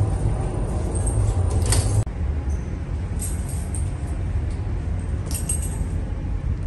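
A metal door latch clicks and rattles.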